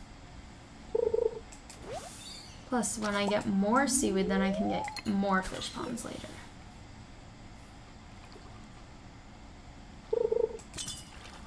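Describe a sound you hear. A fishing bobber plops into water.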